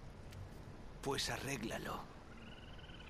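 A man speaks in a low voice, close by.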